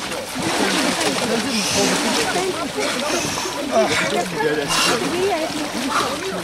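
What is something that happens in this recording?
Water splashes as a man plunges into icy water.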